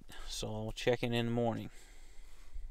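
A man speaks quietly close by.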